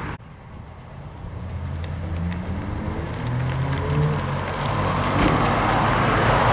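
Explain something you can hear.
An air-cooled Volkswagen Beetle engine chugs as the car drives slowly past.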